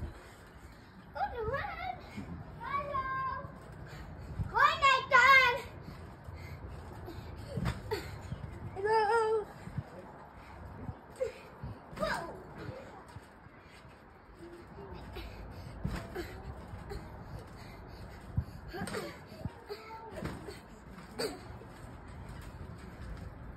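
A trampoline mat thumps and creaks as a child bounces.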